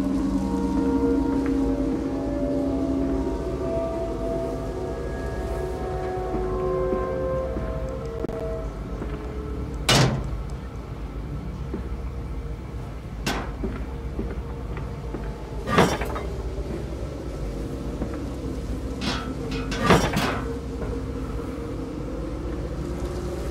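Heavy machinery hums with a steady low drone.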